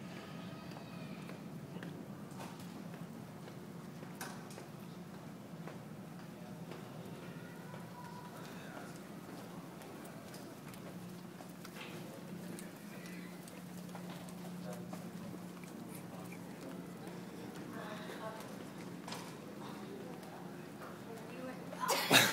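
Suitcase wheels roll along a hard floor.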